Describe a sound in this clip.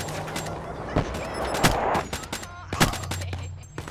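Gunshots crack in short, loud bursts.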